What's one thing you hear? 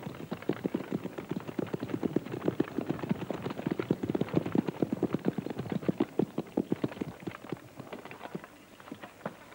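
Horses' hooves clatter quickly on a stony track.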